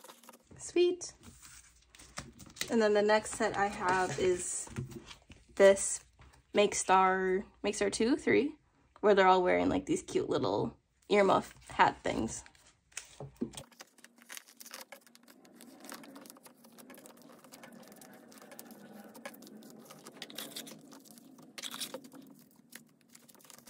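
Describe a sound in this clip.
Plastic card sleeves rustle and crinkle as cards are handled.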